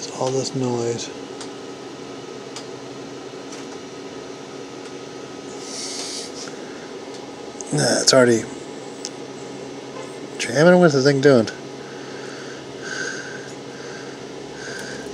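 A 3D printer whirs and hums steadily as its print head moves.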